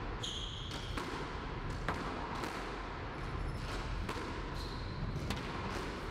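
A squash ball smacks against the walls in a large echoing hall.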